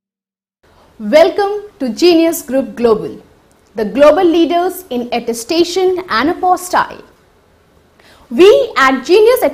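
A young woman speaks clearly and brightly into a close microphone.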